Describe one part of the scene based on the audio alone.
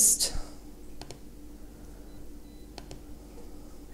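A computer mouse clicks twice.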